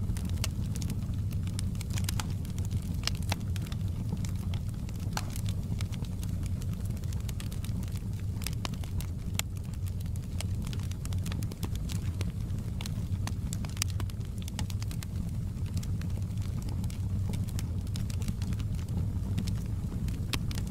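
Flames roar softly and steadily.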